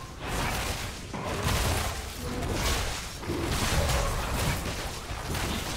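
Fantasy combat sound effects crash and whoosh repeatedly.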